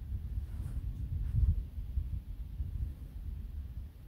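A wooden lid scrapes and knocks as it is pulled off a metal tube.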